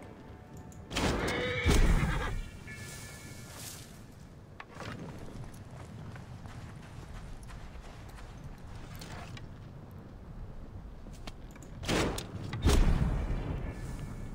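A heavy mounted crossbow fires with a loud thump and boom.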